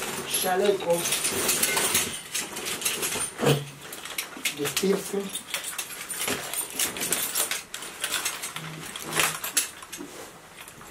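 Straps and buckles of a harness rustle and click.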